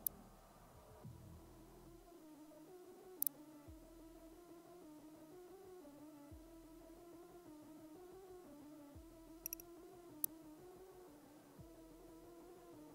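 Low, droning game music hums steadily.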